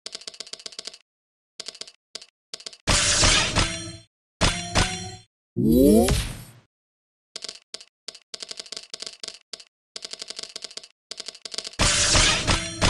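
Quick soft electronic ticks repeat as game pieces are moved.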